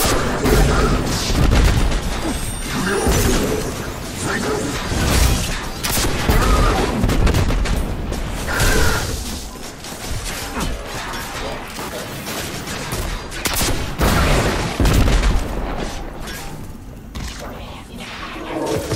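Heavy gunfire booms in rapid bursts.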